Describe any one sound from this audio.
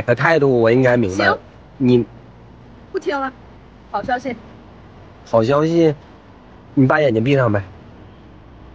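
A young woman speaks close by, calmly and in short bursts.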